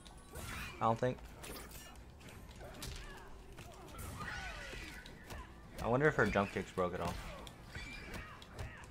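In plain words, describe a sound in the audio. Punches and kicks land with sharp thuds in a video game fight.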